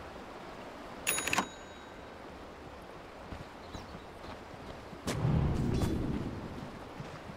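A video game plays short sound effects.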